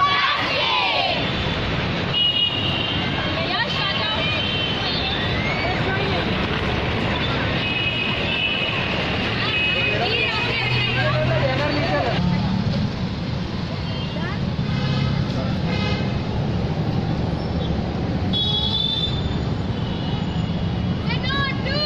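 A large crowd of children and women chatter and call out all at once outdoors.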